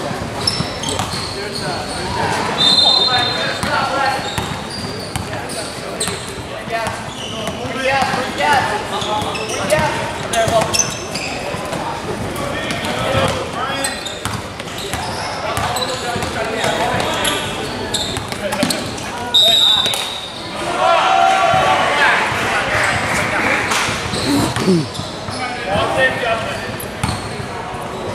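Boys shout and call out across a large echoing gym.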